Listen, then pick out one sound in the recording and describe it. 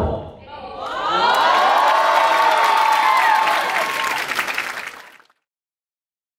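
An audience cheers and whoops loudly in a large hall.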